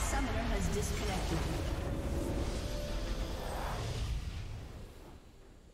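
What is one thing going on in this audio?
A bright burst of triumphant game music swells and then fades.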